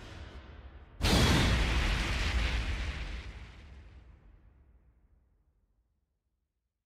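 A heavy blast booms and slowly fades away.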